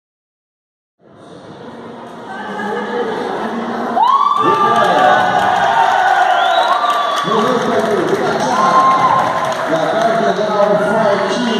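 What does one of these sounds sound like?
A crowd cheers and applauds in an echoing hall.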